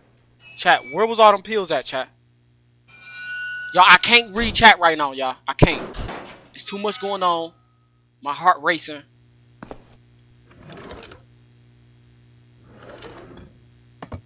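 A wooden drawer slides open with a knock.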